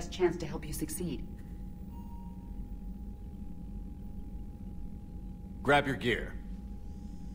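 A woman speaks calmly in a smooth, synthetic-sounding voice.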